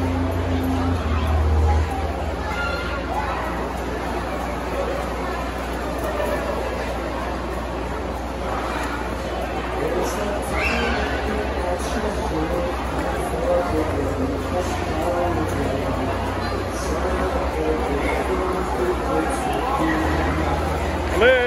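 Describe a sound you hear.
A crowd of children and adults chatter in a large echoing hall.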